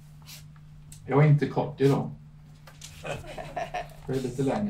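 A middle-aged man speaks calmly into a microphone, heard through a loudspeaker in a room.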